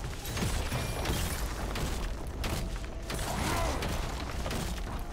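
Magic blasts and sword hits crackle and thud in a busy fight.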